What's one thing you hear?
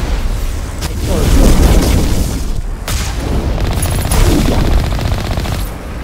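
An explosion bursts with a crackling roar.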